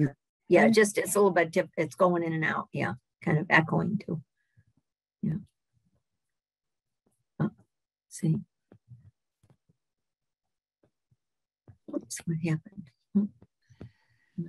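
An elderly woman speaks calmly over an online call, in short bursts with pauses.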